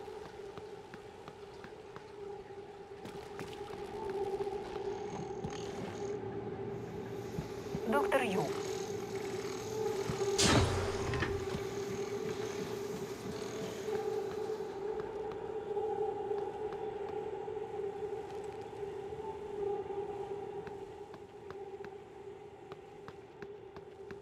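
A low machine hum drones steadily.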